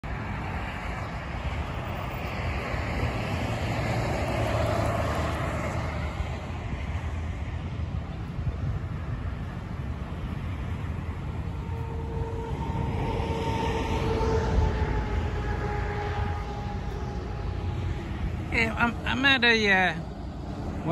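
Traffic passes steadily on a nearby road outdoors.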